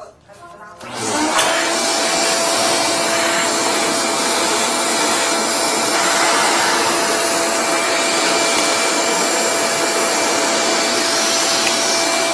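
A wet-dry vacuum roars as it sucks at a floor drain.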